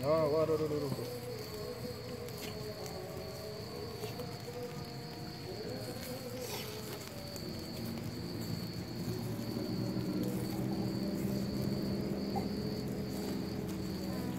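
Charcoal crackles as flames flare up.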